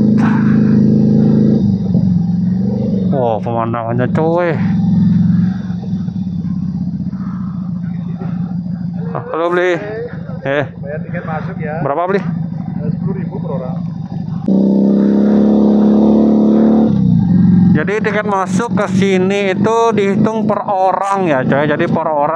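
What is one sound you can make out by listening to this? A motorcycle engine idles and runs steadily as it rides along.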